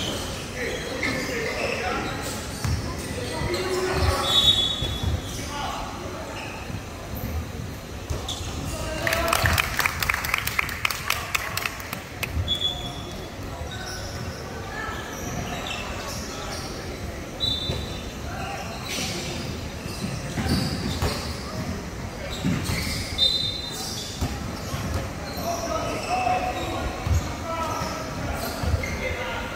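Young men call out to one another across the court.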